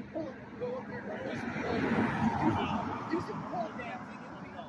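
A car drives past close by on a street outdoors.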